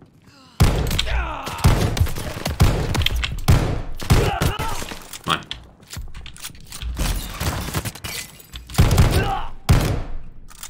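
A shotgun's pump racks and clicks between shots.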